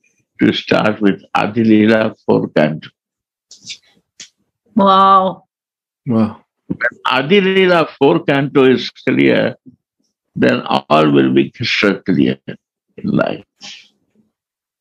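An elderly man speaks slowly and calmly over an online call.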